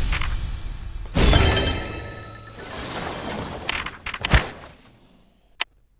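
A bright game jingle plays as rewards are collected.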